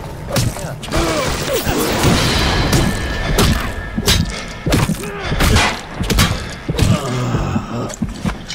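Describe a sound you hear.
A man groans and snarls close by.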